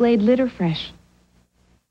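A woman speaks calmly and clearly.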